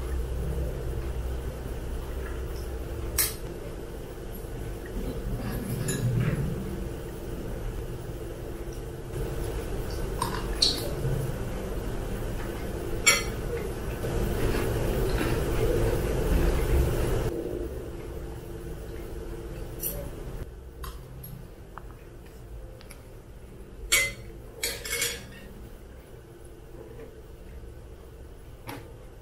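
A young woman chews and slurps noodles close to a microphone.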